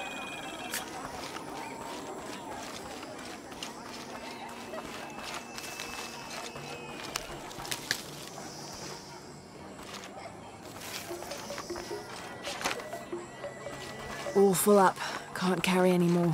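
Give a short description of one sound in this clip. Footsteps crunch on dirt and grass.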